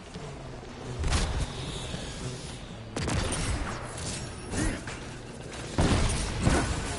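Bursts of electronic blasts and whooshes sound in a game.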